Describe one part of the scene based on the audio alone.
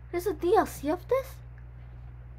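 A young woman speaks with animation into a nearby microphone.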